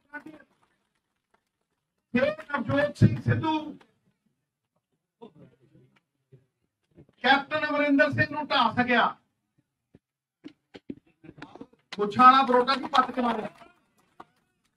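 A man speaks forcefully into a microphone in short bursts, with pauses between phrases.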